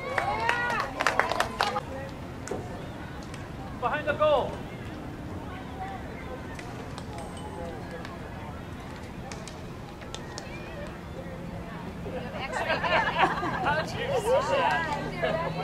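A hockey stick strikes a ball with a sharp crack.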